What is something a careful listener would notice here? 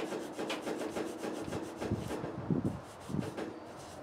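An abrasive pad scrubs rusty metal.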